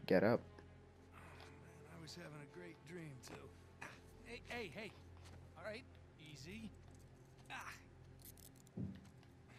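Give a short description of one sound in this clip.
A young man speaks in a groggy, joking tone.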